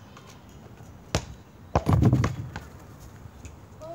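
A basketball bounces with a thud.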